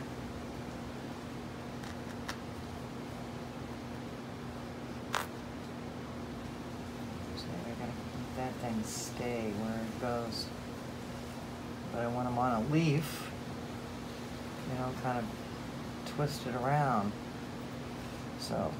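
Fingers softly rustle while twisting a small piece of material.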